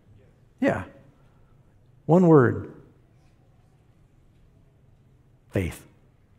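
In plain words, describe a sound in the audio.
A man speaks through a loudspeaker in a large hall, in short, emphatic phrases with long pauses.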